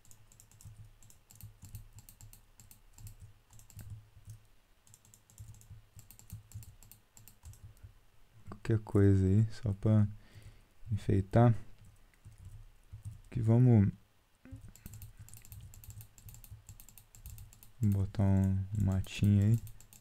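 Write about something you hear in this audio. Game blocks break with short crunching sounds.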